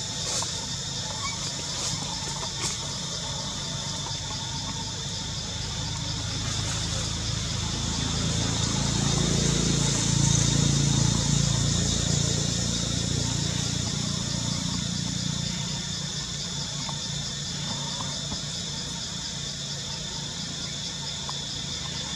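Leaves rustle as a monkey moves through the branches.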